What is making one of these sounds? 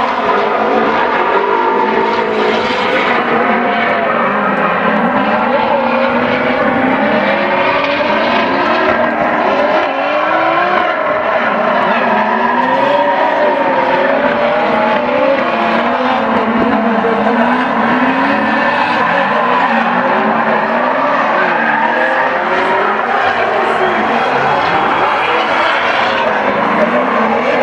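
Tyres screech as cars slide.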